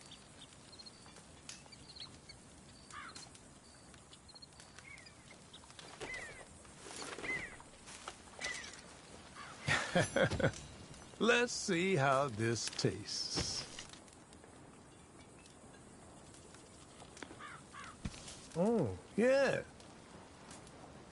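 A campfire crackles softly nearby.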